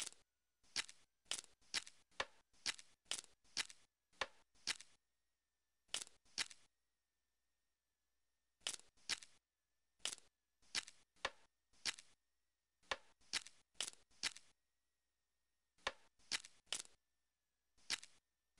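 Short game sound effects chime as puzzle pieces are moved and dropped into place.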